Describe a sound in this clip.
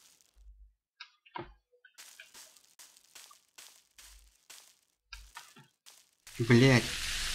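Footsteps fall on dry grass.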